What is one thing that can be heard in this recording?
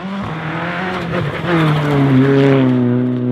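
Gravel sprays and crunches under a sliding car's tyres.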